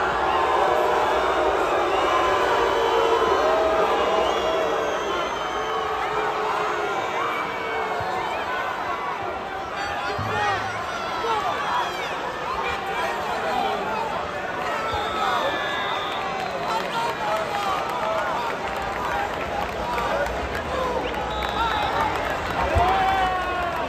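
A large crowd of men and women shouts and calls out in a big echoing hall.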